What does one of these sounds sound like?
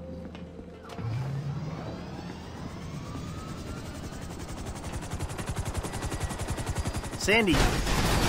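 A helicopter's engine whines, rising in pitch.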